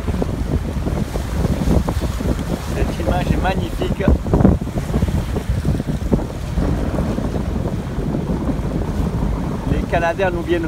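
Waves splash against a moving boat's hull.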